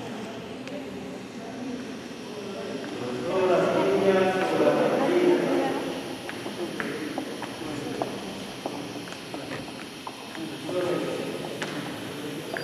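Shoes tap on a hard floor as people walk slowly.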